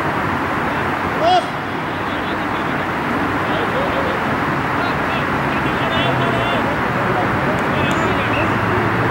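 Men shout to each other across an open field at a distance.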